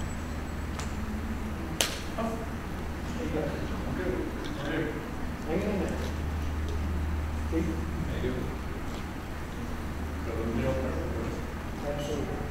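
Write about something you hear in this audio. Adults talk quietly at a distance in a large room that echoes.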